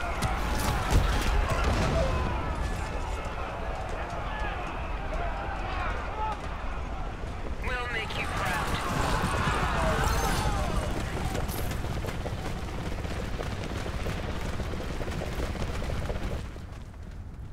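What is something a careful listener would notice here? Gunfire and explosions of a battle rattle and boom close by.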